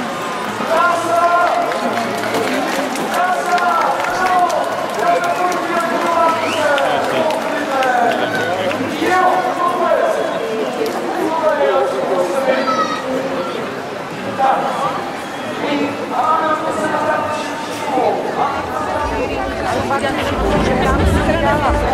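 A crowd of people talks and calls out nearby outdoors.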